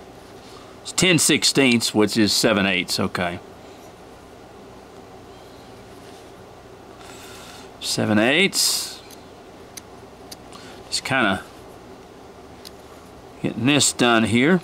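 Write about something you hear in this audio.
A small knife shaves and scrapes softly at wood.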